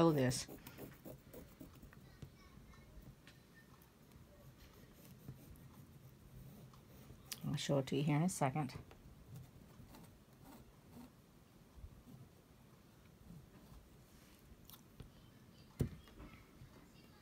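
A pen scratches lightly across fabric.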